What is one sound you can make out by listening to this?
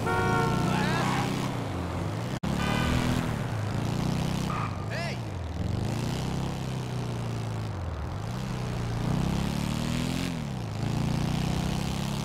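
A motorcycle engine roars steadily, rising and falling in pitch as it speeds up and shifts gears.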